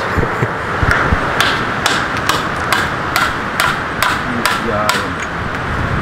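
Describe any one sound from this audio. Wooden poles knock against each other.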